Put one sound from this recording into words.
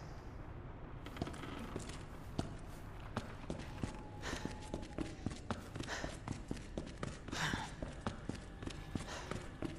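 Footsteps tap quickly on a hard floor.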